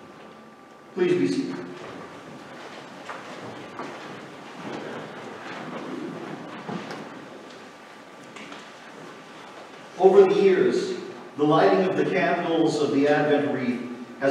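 A man reads aloud calmly through a microphone in a large echoing room.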